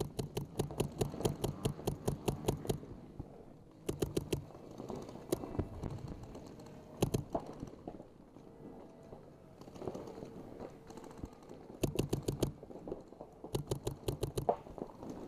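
A paintball marker fires rapid bursts of shots close by.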